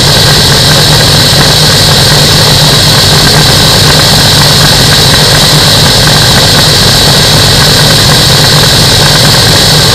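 An engine drones loudly and steadily as a propeller spins.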